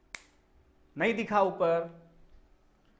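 A young man speaks clearly and close by.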